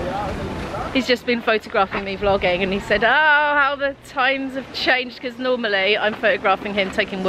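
A young woman speaks cheerfully, close by.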